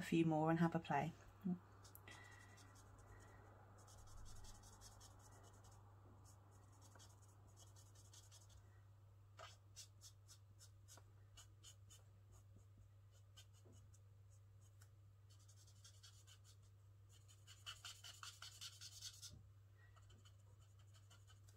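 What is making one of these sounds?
A marker tip scratches softly on paper.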